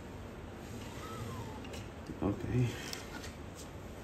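A thin metal sheet scrapes and clicks as it is lifted off a flat plate.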